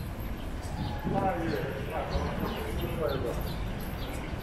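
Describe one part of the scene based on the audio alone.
A man talks on a phone close by.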